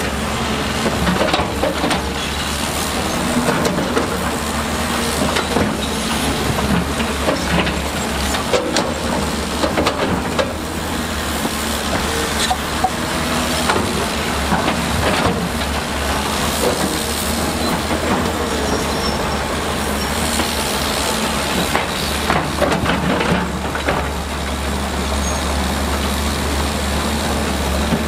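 A diesel engine of an excavator rumbles steadily.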